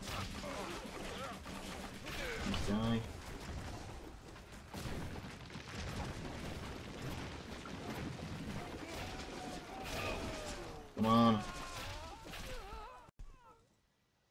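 Weapons clash and buildings burn in a noisy battle.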